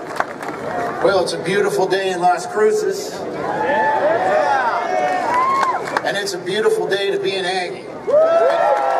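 A man speaks through a loudspeaker outdoors, calmly addressing a crowd.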